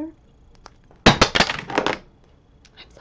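A plastic tube clicks and rattles in a woman's hands.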